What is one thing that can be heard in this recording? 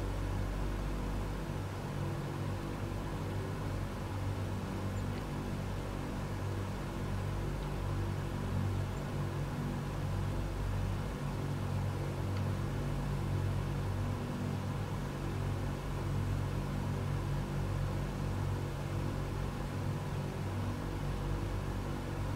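Propeller engines drone steadily with a deep, throbbing hum.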